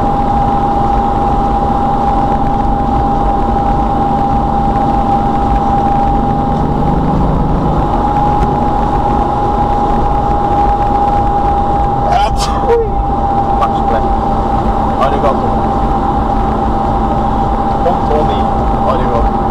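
A car engine hums steadily at speed, heard from inside the car.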